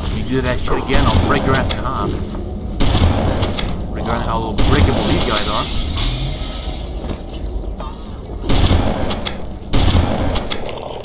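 Shotgun blasts boom loudly, one after another.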